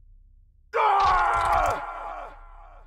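A blade stabs into flesh with a wet, crunching thud.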